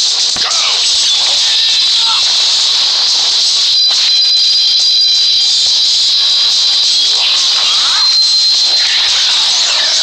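Blasts and energy bursts crackle and whoosh.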